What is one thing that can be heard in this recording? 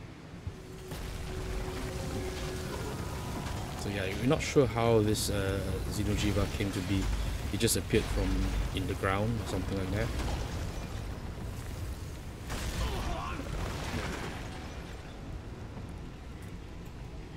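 Loud blasts and crashes rumble and boom.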